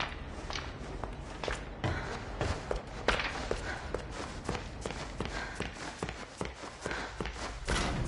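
Footsteps thud along a hard floor.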